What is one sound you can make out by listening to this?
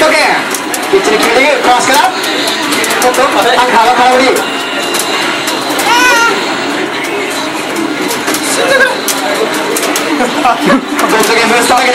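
Buttons on an arcade control panel click rapidly.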